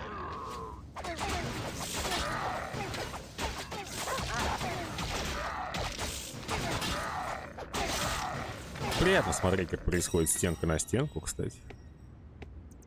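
Weapons clash and thud in a busy fight.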